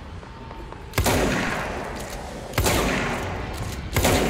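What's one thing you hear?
Gunshots blast sharply and echo.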